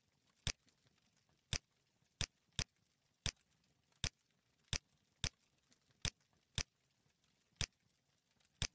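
Short sharp clicks sound one at a time at uneven intervals.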